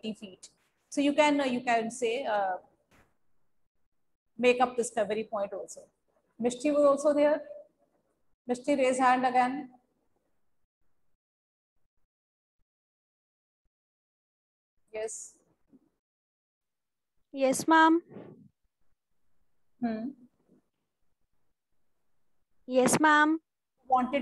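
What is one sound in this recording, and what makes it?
A young woman speaks calmly and clearly into a microphone, in bursts with pauses.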